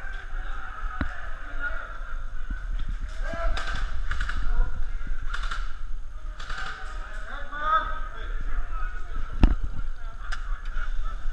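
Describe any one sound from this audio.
Airsoft guns fire with sharp single cracks.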